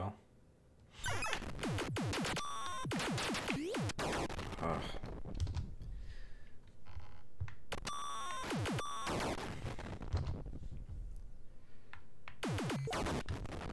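An arcade game fires rapid electronic zaps and bleeps.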